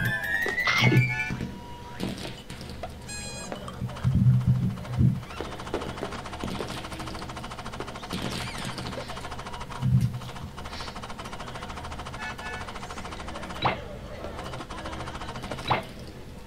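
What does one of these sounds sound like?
Bouncy game music plays throughout.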